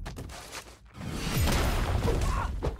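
Fiery explosive bursts roar.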